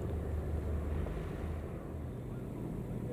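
A boat engine hums steadily close by.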